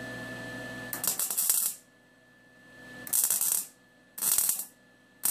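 A welding arc crackles and buzzes in short bursts.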